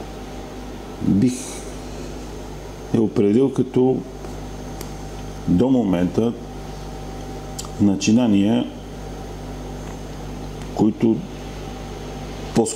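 An older man speaks slowly into a microphone, in short phrases with long pauses.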